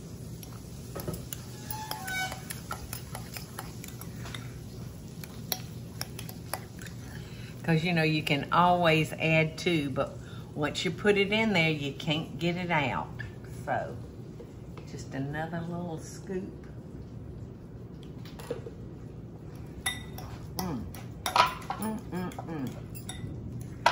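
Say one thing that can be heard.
A fork scrapes and clinks against a glass bowl.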